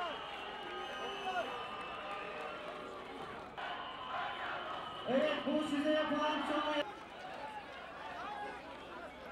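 A large crowd shouts and chants outdoors.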